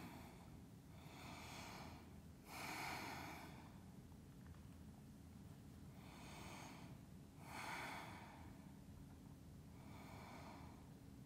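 A woman breathes out slowly and audibly.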